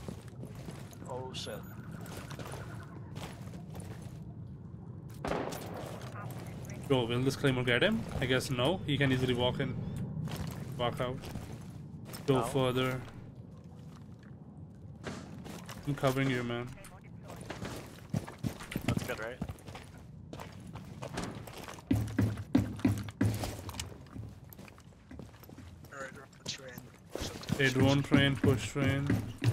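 A young man talks casually into a microphone, close by.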